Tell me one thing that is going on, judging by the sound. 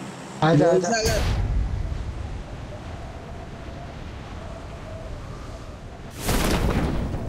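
Wind rushes loudly past a falling skydiver.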